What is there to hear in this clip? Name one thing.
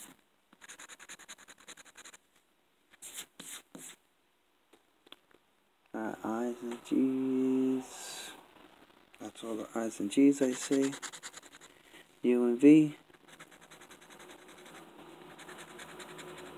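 A coin scratches rapidly across a card.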